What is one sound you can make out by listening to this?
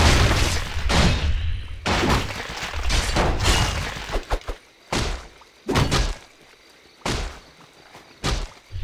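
Magic blasts burst again and again in a battle.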